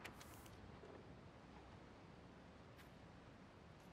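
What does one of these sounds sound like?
Paper rustles as a letter is handled.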